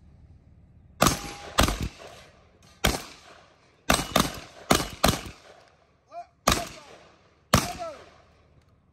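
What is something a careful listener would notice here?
Shotgun blasts ring out outdoors, one after another.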